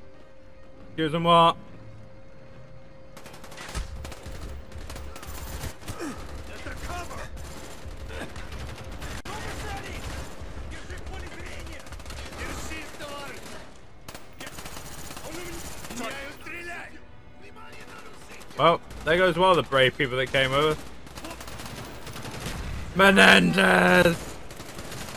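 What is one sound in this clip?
Automatic gunfire rattles in short bursts.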